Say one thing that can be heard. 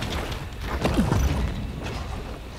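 A fiery blast bursts with a loud boom.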